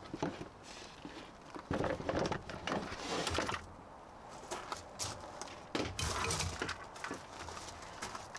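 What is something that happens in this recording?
A wooden board scrapes and knocks against the sawhorses.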